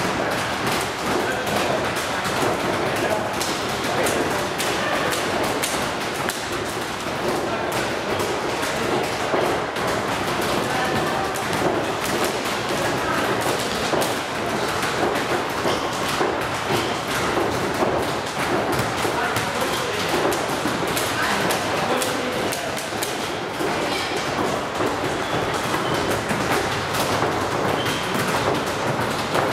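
A volleyball thumps off players' hands again and again, echoing in a large hall.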